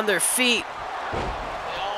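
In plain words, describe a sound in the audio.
A body slams down onto a wrestling ring mat with a thud.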